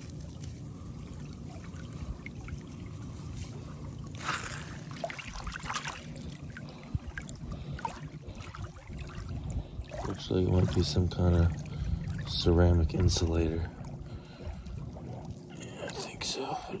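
Small waves wash gently over sand and pebbles.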